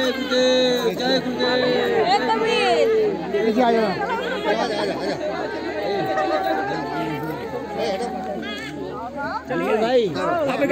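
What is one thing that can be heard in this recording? A woman sings loudly at close range.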